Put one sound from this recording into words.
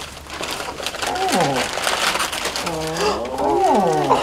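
Wrapping paper rustles and crinkles.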